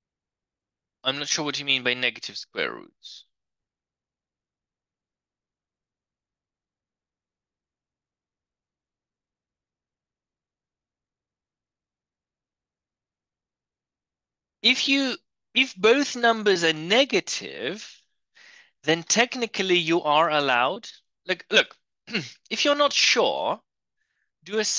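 A man speaks calmly, explaining, close to a microphone.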